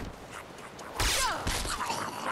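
Metal weapons clash and ring in a fight.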